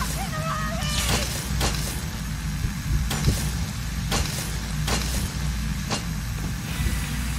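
Heavy blocks slide and clunk into place.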